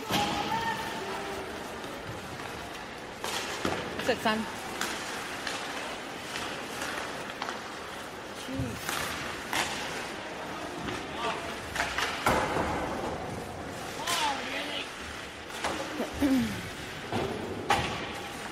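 Players shout across the rink in a large echoing hall.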